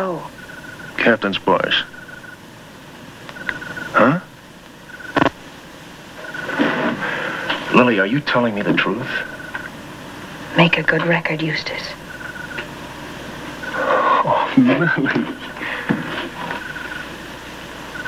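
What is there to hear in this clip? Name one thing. A man speaks quietly and seriously, close by.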